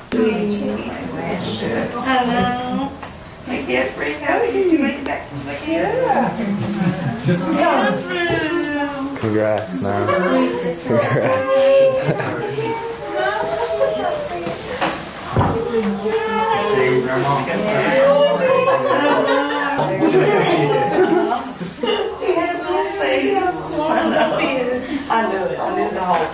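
A young woman talks and laughs excitedly close by.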